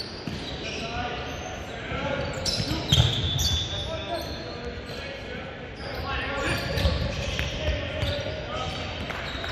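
Young men call out to each other across the gym.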